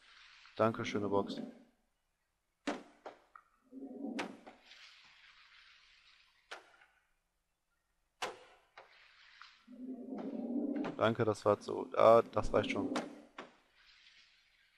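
A heavy wooden crate swings and knocks with dull thuds.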